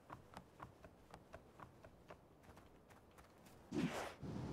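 Quick footsteps patter on dirt.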